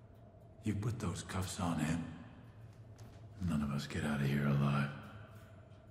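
A man speaks sternly and threateningly in a low voice.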